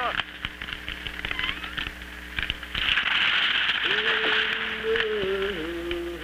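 A tree creaks and crashes to the ground.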